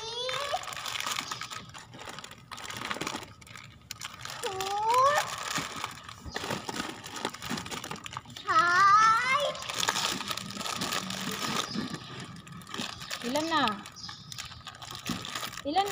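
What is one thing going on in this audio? Plastic snack packets crinkle and rustle as they are handled.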